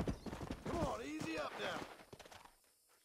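A horse whinnies loudly as it rears.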